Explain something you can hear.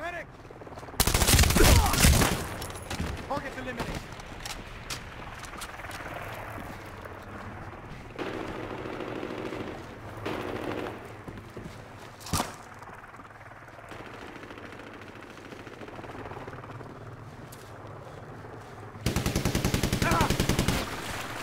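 Rapid gunfire rattles in quick bursts close by.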